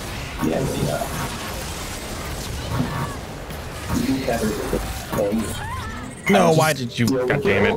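Spell and hit sound effects from a video game battle clash.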